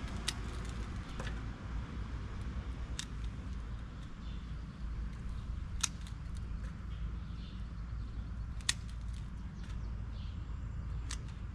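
Hands rustle and scrape through dry wood mulch.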